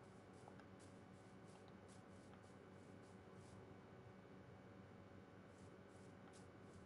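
Footsteps crunch softly on grass at a steady pace.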